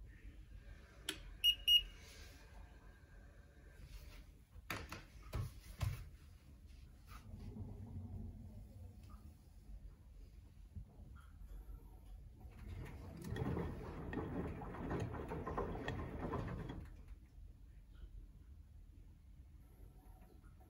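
A washing machine motor hums low and steadily.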